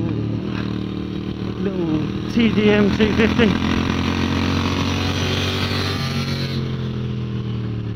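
Other motorcycles roar past nearby.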